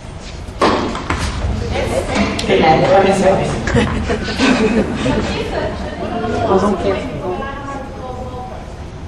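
Spectators talk close by in a large echoing hall.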